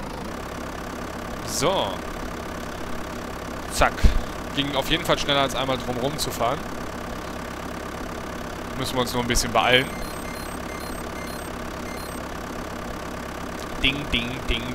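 A diesel tractor engine drones as the tractor drives along.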